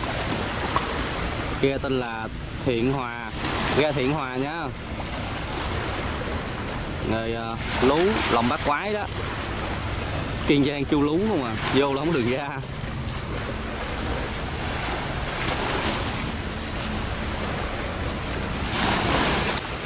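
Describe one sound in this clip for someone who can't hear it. Waves splash against a boat's hull.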